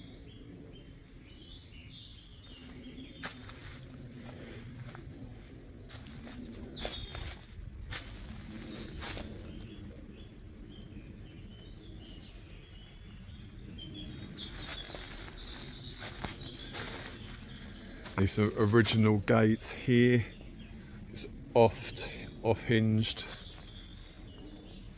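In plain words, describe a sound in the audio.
Footsteps crunch through dry leaves.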